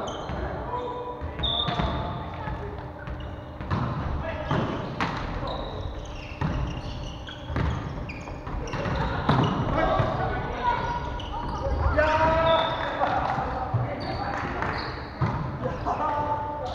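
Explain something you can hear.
Several men and women call out and chatter across the hall.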